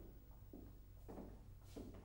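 Slow footsteps tap on a hard floor.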